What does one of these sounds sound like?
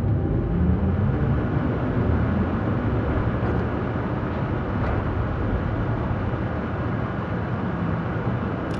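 Water rushes and churns steadily around a submarine moving underwater.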